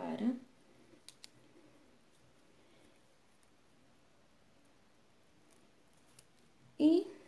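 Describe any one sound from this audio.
Beads click lightly against each other.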